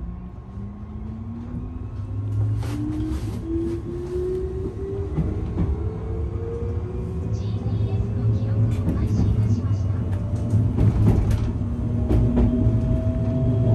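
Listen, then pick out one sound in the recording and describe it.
A train's electric motor hums and whines, rising steadily in pitch as it speeds up.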